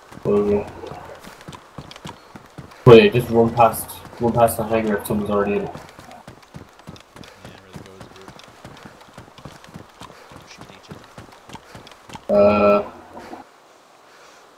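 Footsteps run on a concrete floor.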